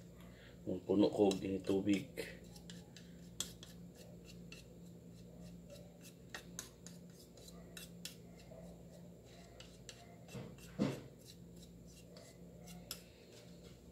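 A plastic spoon clinks and scrapes against a plastic bowl.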